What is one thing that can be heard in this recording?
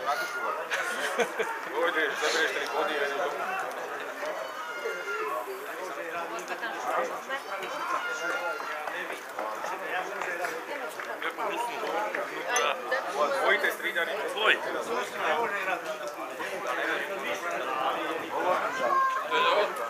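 Men shout in the distance outdoors.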